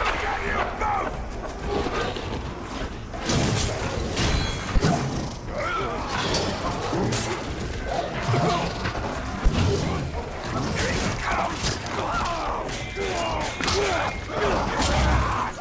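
Blades clash and slash repeatedly in a fight.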